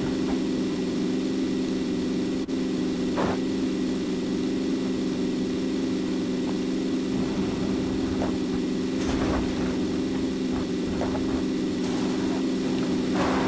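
A car engine drones steadily as the car drives over rough ground.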